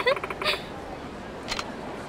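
A girl cries out in alarm.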